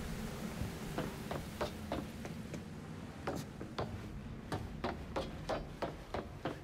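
Footsteps tap quickly on a hard walkway.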